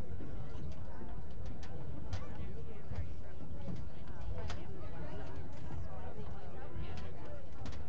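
Several men talk quietly at a distance.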